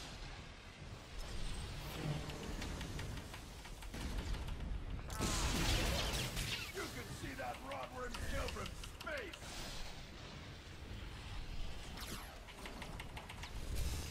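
Electricity crackles and zaps in bursts.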